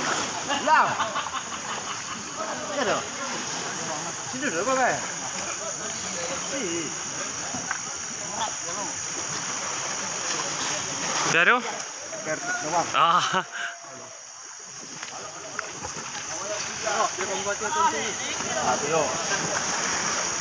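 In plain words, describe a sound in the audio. River water splashes around people wading.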